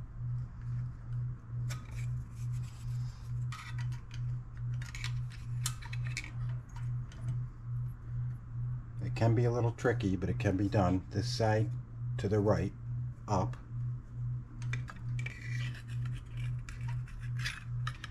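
Metal engine parts clink and rattle as they are handled.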